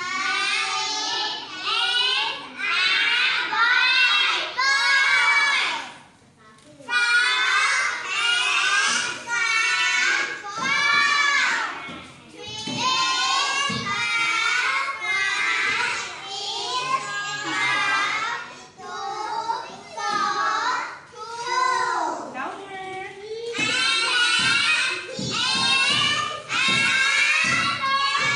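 A group of young children sing together loudly and close by.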